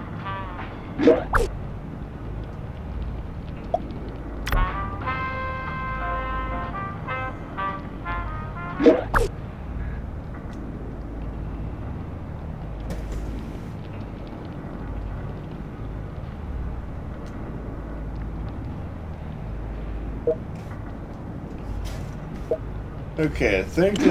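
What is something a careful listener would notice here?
Soft electronic clicks sound as game menus scroll and open.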